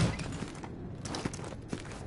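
Boots thud on a hard floor as figures walk.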